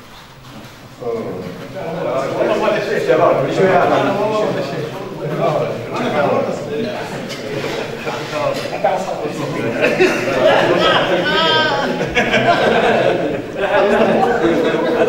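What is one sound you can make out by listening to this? Several men talk and murmur at once, close by.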